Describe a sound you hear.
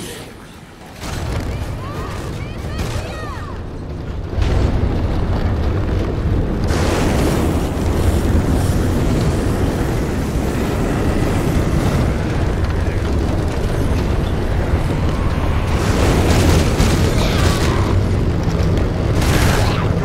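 A motorcycle engine roars and rumbles steadily.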